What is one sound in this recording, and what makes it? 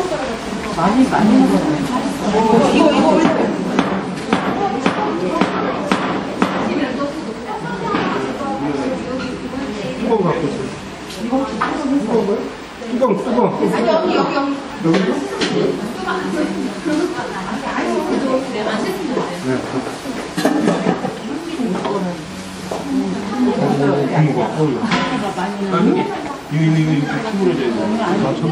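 Several women and men chatter and laugh nearby.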